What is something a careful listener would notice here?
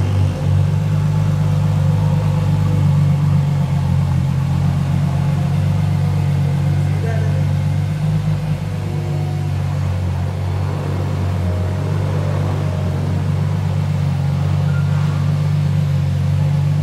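A car engine idles with a deep, steady rumble.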